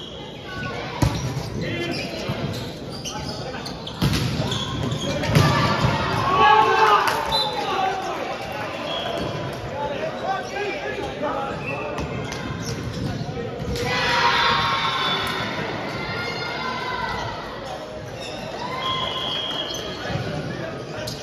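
A volleyball is struck with sharp slaps that echo in a large hall.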